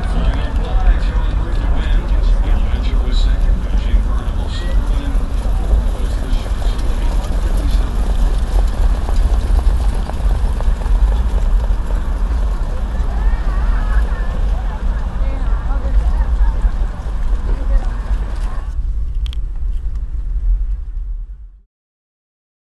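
A car engine rumbles steadily close by.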